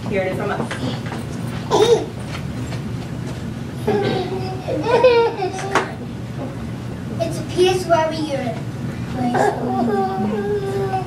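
A young child speaks through a loudspeaker, with a room echo.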